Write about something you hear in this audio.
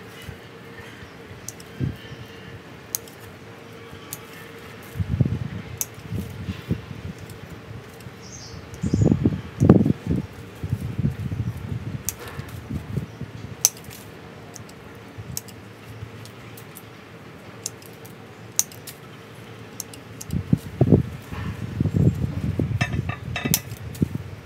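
Pruning shears snip small branches.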